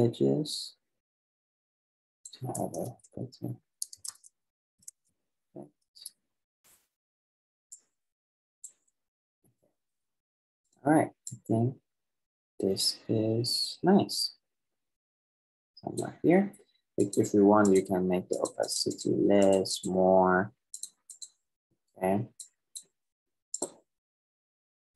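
A young man talks calmly into a microphone, with pauses.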